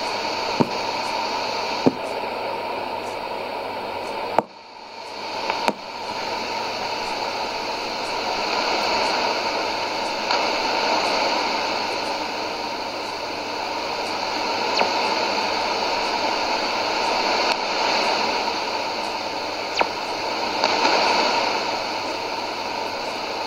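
A shortwave radio hisses and crackles with a noisy, fading broadcast through its loudspeaker.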